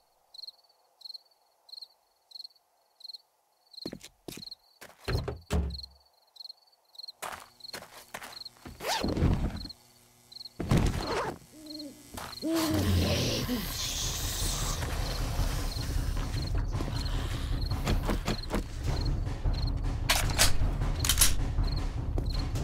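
Footsteps crunch steadily on gravel and rubble.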